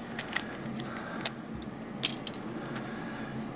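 A metal padlock clicks and rattles as it is turned in a hand.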